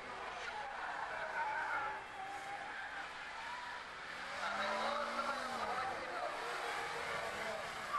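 A small car engine revs and whines as the car races around a bend.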